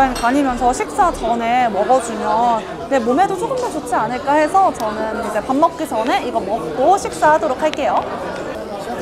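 A young woman talks calmly and cheerfully close to a microphone.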